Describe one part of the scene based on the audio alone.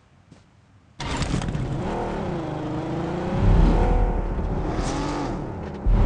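A car engine revs and drones as the car drives.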